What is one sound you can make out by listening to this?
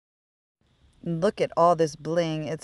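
A woman talks cheerfully nearby.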